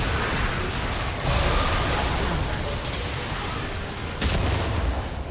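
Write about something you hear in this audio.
Video game spell effects burst and clash during a fight.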